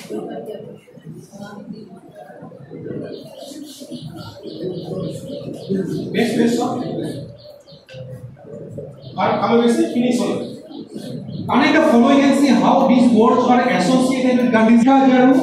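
A man speaks to an audience through a microphone in an echoing hall.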